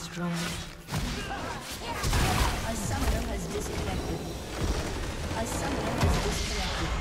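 Game spell effects crackle and clash.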